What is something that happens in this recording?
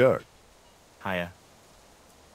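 A young man answers in a short, flat reply.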